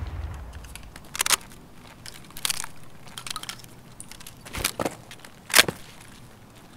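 A shotgun's action clicks and clacks as it is handled.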